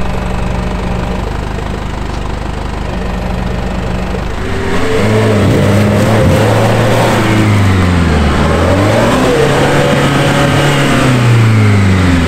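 An engine idles and then revs hard, rising and falling.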